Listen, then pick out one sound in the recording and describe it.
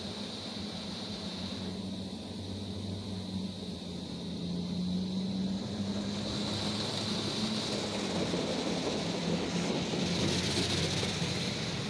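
Rain patters steadily on a car's rear window, heard from inside the car.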